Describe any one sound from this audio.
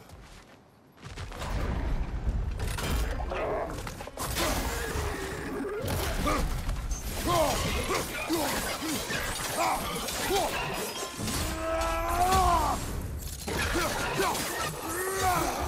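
An axe strikes a creature with heavy thuds.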